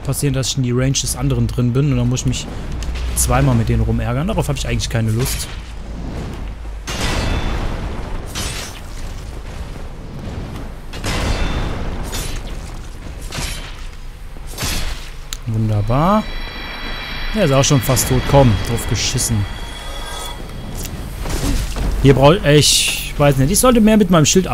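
A young man talks with animation into a nearby microphone.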